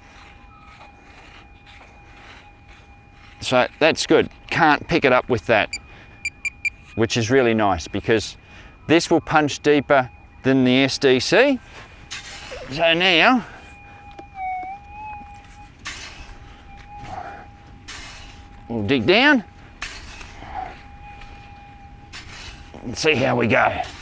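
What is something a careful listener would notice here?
A shovel scrapes and digs into sand.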